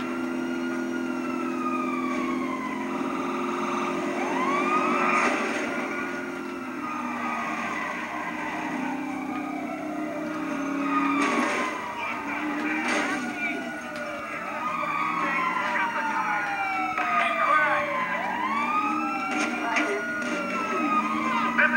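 Police sirens wail, sweeping up and down in pitch.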